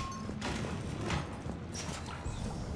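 A sliding door hisses open.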